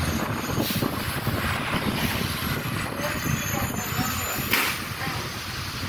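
Tyres hiss on the wet road.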